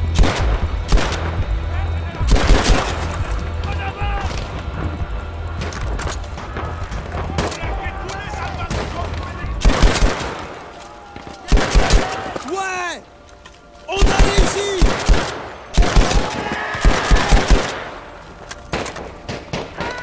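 Rifle shots crack in quick bursts, close by.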